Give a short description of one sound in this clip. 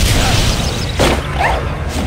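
A magic spell shimmers and chimes.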